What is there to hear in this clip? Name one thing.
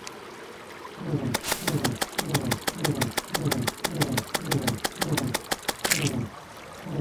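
A tool swings and thuds rapidly in a video game.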